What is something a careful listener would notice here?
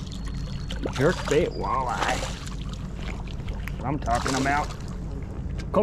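A fish thrashes and splashes at the water's surface.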